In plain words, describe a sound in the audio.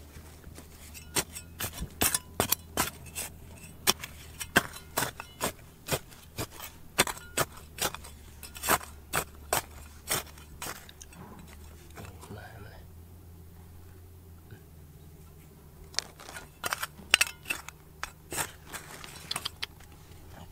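A metal trowel scrapes and digs into dry gravelly soil.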